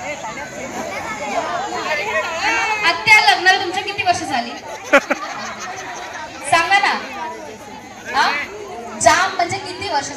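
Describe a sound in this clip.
A crowd of women chatters and laughs loudly nearby, outdoors.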